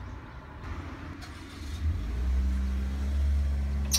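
A metal window latch clicks.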